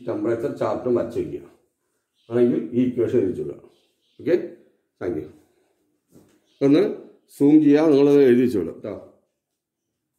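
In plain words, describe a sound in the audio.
A middle-aged man speaks calmly and clearly, close by, as if teaching.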